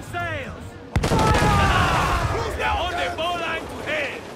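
Men shout loudly on a ship's deck.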